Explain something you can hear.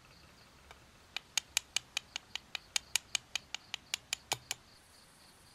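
A small metal tool taps rapidly on an eggshell.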